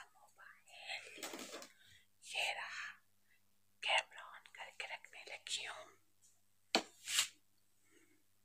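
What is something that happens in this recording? A brush swishes through long hair in quick strokes.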